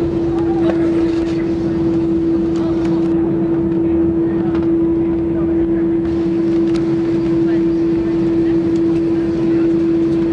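A jet engine hums loudly and steadily.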